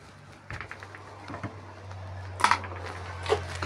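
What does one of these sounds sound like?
A wooden door creaks as it swings open.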